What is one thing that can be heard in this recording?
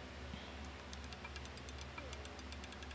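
A roulette ball clatters and bounces to rest in a wheel.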